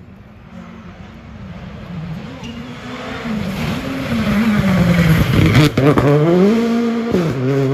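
A rally car engine roars closer, revving hard and changing gear as it speeds past.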